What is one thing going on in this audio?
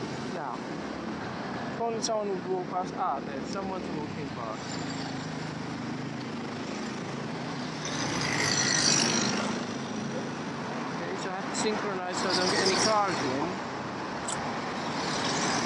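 Traffic rumbles steadily along a city street.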